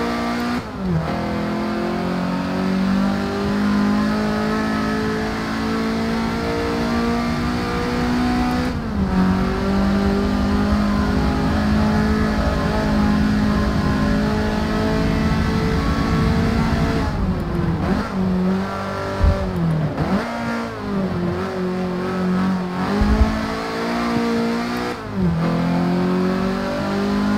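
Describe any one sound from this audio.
A car engine revs hard and climbs through the gears, with the pitch dropping at each gear change.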